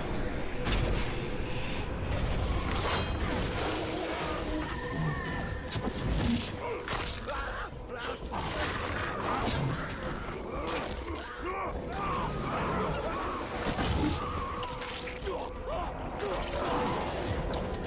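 Blades slash and strike with sharp impacts.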